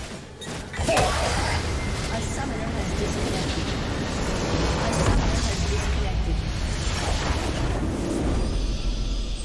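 A massive structure explodes with a deep, rumbling boom.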